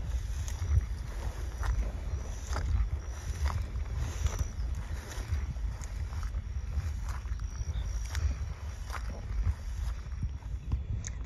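Tall grass rustles and swishes in the wind.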